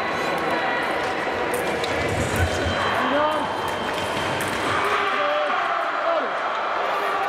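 Fencers' shoes tap and squeak on a hard floor.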